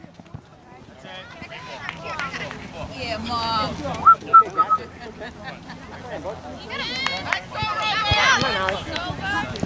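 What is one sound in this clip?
Children shout to each other across an open field.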